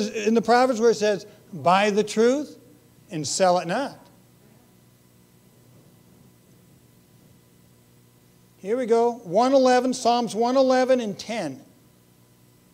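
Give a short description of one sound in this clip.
A middle-aged man speaks with animation into a microphone, in pauses.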